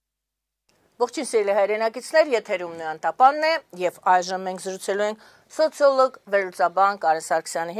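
A middle-aged woman speaks calmly and clearly into a microphone.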